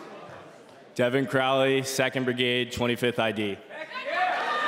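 A young man speaks loudly through a microphone in a large echoing hall.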